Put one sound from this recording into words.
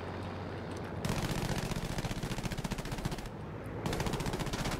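Aircraft machine guns fire in rapid bursts.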